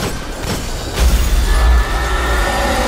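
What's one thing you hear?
A heavy blast booms with a deep rumble.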